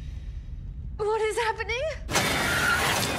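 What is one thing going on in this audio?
A woman asks a question in a tense, trembling voice.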